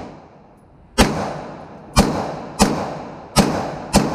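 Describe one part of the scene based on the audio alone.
A pistol fires a quick series of loud shots that echo sharply in an enclosed room.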